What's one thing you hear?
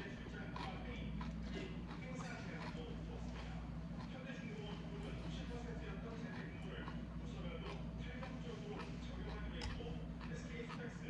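Metal chopsticks and a spoon clink and scrape against a bowl.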